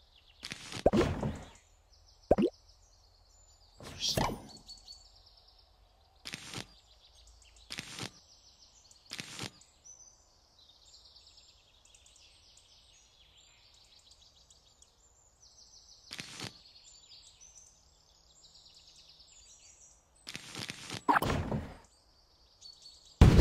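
Bright, tinkling game music plays.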